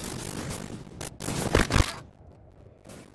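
A loud wet splatter bursts.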